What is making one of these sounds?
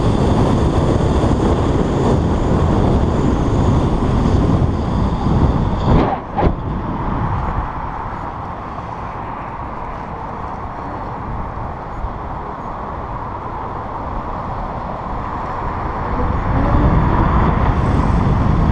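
Wind rushes loudly past while riding along a road.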